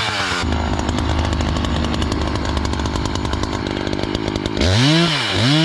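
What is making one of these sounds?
A chainsaw idles with a rattling putter.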